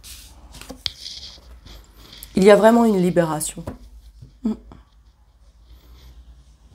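Playing cards shuffle and rustle in hands.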